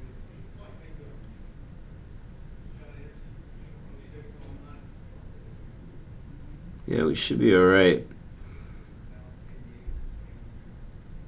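A man murmurs softly into a microphone.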